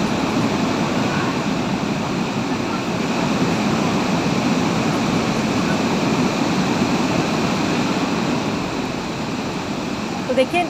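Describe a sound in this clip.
A muddy flood torrent roars and rushes loudly over rocks.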